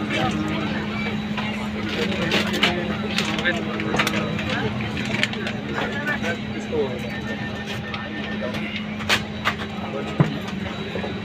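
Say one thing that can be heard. Many men chatter close by and farther off.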